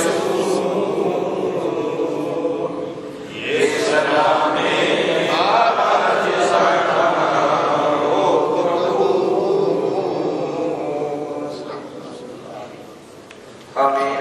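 A crowd of men murmur a prayer together.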